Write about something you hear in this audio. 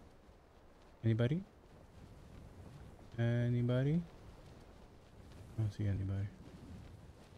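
A man speaks in short bursts into a microphone, close by.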